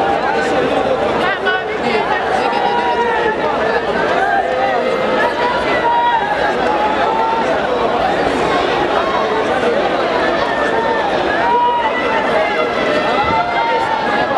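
A crowd claps hands rhythmically.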